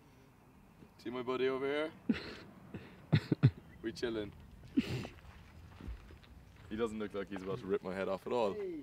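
A man speaks calmly to someone close by, outdoors.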